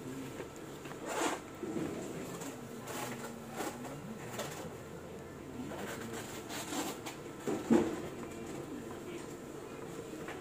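Plastic clicks and knocks as a cable plug is handled and pushed into a port.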